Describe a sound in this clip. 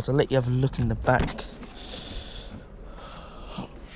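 A car door handle clicks and the door opens.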